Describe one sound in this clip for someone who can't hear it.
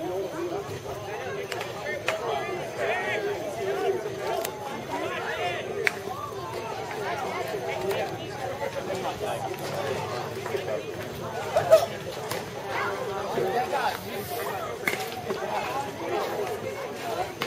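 Young boys chatter and call out outdoors.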